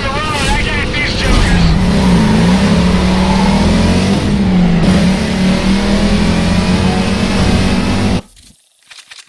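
A racing car engine roars loudly and revs up as it accelerates.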